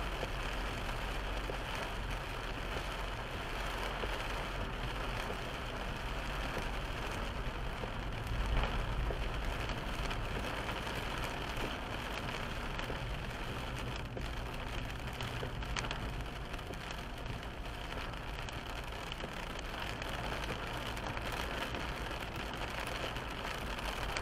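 A windscreen wiper sweeps across the glass.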